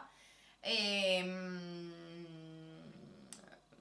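A young woman makes a long, drawn-out humming sound up close.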